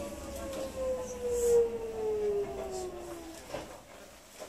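An electric train's motor whines and falls in pitch as the train slows to a stop.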